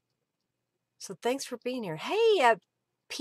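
A middle-aged woman speaks with animation through a microphone.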